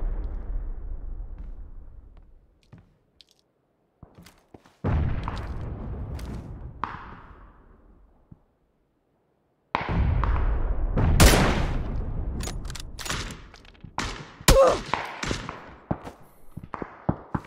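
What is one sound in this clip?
Rifle shots boom loudly and echo away.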